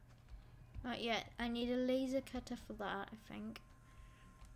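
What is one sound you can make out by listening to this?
A boy speaks with animation close to a microphone.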